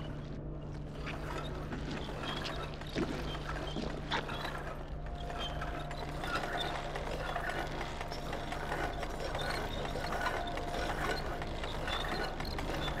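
A heavy metal crank creaks and grinds as it turns.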